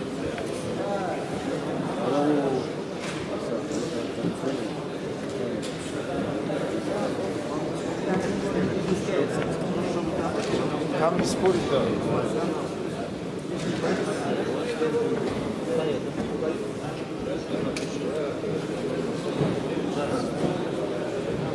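Several men talk close by in a large echoing hall.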